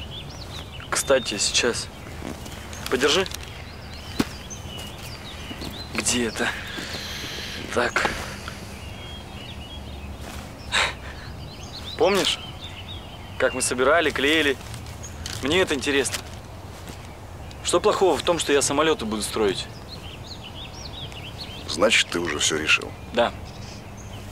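A middle-aged man speaks firmly, close by.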